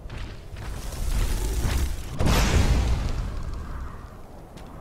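A magic spell crackles and bursts with a loud rush.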